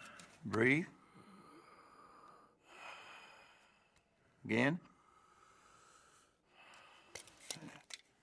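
A man groans and gasps in pain.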